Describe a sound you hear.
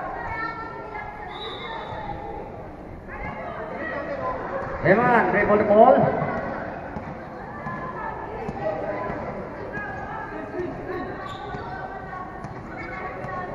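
A crowd of spectators chatters and cheers.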